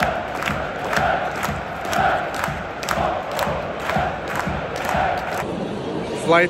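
A large stadium crowd chants loudly.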